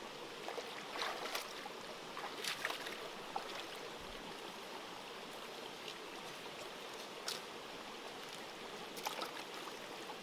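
Hands splash and rustle in shallow water.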